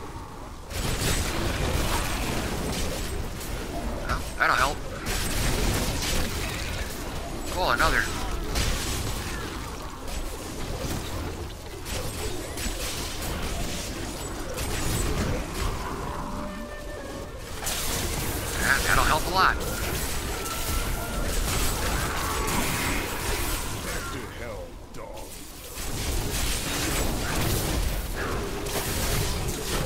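Fiery blasts and explosions crackle and roar in a fast game battle.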